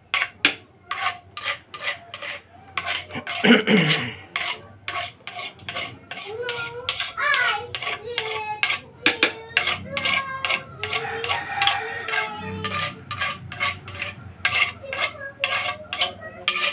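A metal pestle pounds rhythmically into a metal mortar with dull thuds.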